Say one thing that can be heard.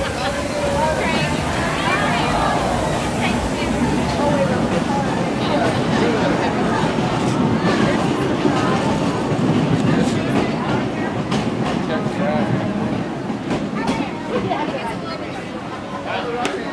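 A small steam train rumbles past on its track.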